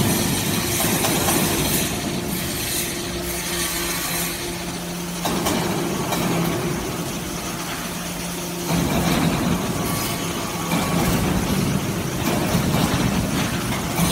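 Metal parts clank and rattle as a press compacts scrap.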